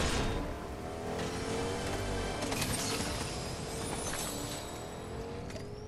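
A treasure chest opens with a bright chiming shimmer.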